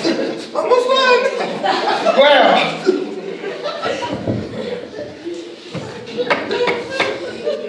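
A person speaks with animation through a microphone in a large echoing room.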